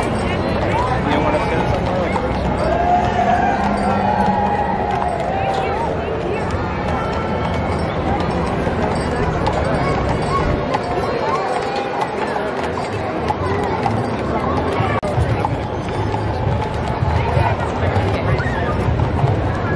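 A large outdoor crowd chatters and cheers along a street.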